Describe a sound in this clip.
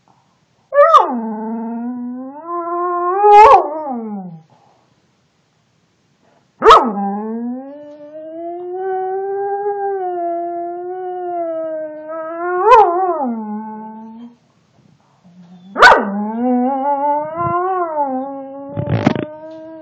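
A dog howls close by in long, wavering, rising and falling cries.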